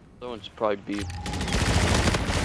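An energy rifle fires.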